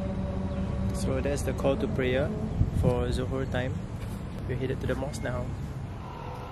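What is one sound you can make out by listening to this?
A young man speaks close by, calmly.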